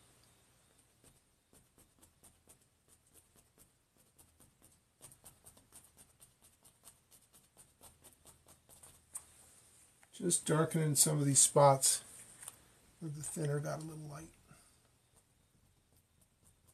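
A paintbrush taps and brushes lightly against a canvas.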